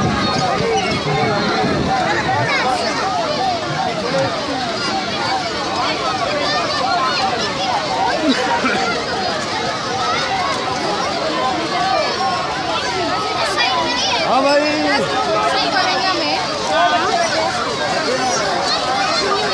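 A small carousel of toy cars rattles as it turns.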